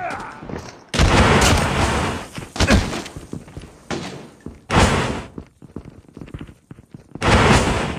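Gunfire rattles loudly in bursts.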